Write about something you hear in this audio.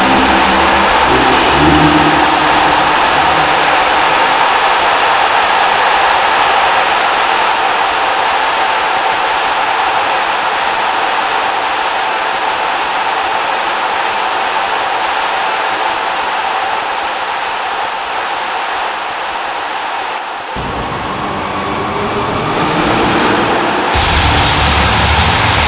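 Loud electronic music plays steadily.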